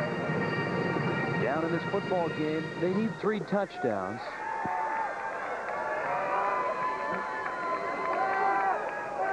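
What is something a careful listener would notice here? Spectators shout and cheer from the sidelines.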